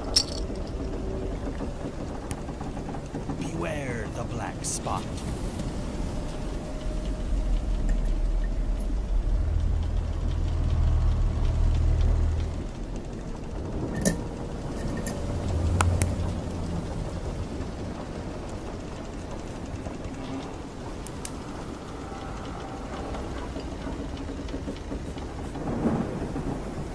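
Waves lap and wash gently against a wooden ship's hull.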